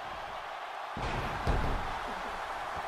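A body slams down hard onto a wrestling mat with a heavy thud.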